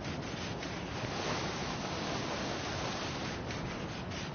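Water splashes and rushes.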